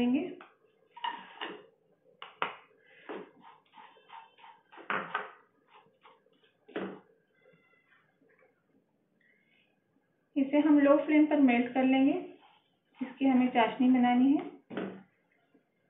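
A wooden spatula scrapes and stirs food in a frying pan.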